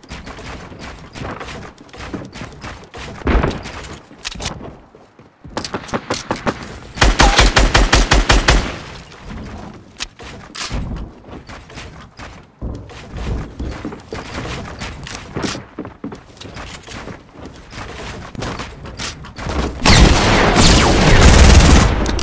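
Wooden building pieces snap into place with quick, rapid clacks.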